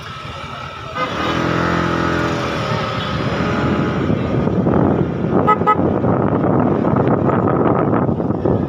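Wind rushes loudly past while riding.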